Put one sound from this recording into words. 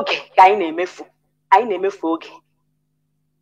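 A woman speaks clearly through a microphone.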